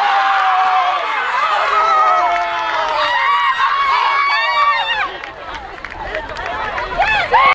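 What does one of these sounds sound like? Young women shout and cheer excitedly outdoors.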